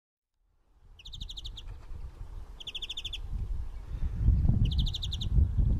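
A small bird sings short, fast buzzy trills, pausing between them.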